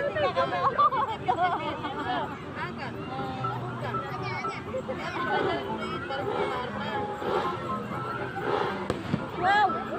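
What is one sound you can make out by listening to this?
Children shout and chatter all around in a lively outdoor crowd.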